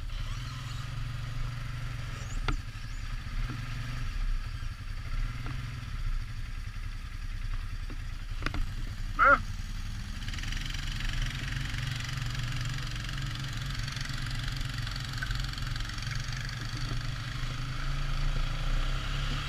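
A quad bike engine idles and rumbles close by.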